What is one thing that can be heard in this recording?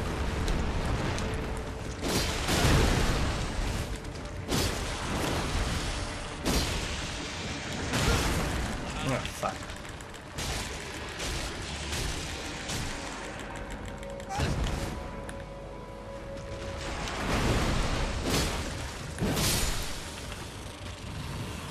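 A giant creature stomps and slams down with deep rumbling thuds.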